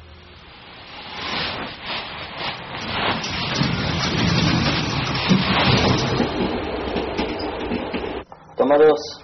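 A subway train rumbles and rattles along with a loud roar.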